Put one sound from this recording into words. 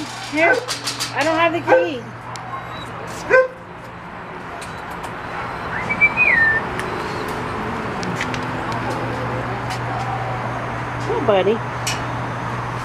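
A dog yelps and whines close by.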